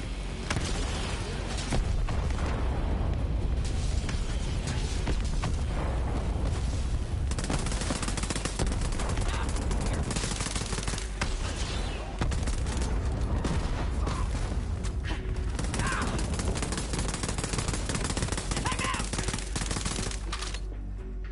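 Rapid gunfire rattles and bursts in loud volleys.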